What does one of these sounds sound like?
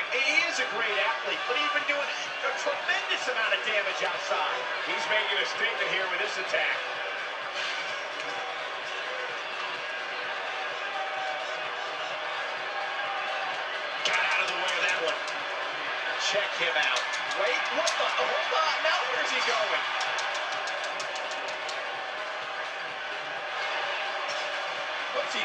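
A crowd cheers and roars through a television speaker.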